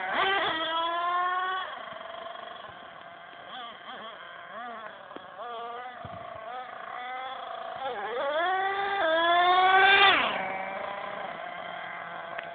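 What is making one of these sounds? A small model car engine buzzes loudly, revving up and down in high whining bursts.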